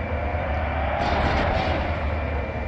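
A loud blast bursts and rumbles.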